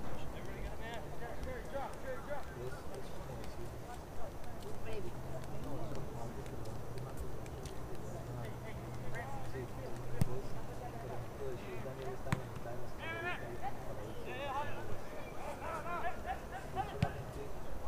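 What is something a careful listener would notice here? Young men shout to each other across a large open field outdoors.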